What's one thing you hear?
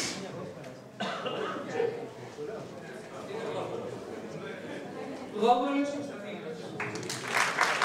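A woman speaks into a microphone over a loudspeaker.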